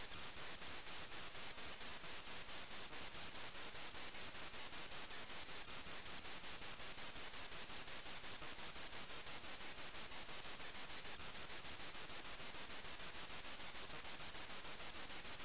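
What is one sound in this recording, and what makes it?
A steam engine chuffs in a quick, steady rhythm of hissy electronic bursts.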